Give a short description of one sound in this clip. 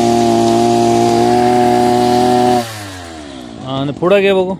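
A petrol brush cutter engine runs at high revs, then winds down.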